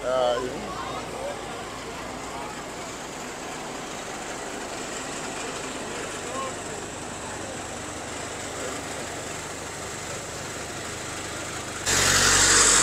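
A vehicle engine idles with a steady rumble.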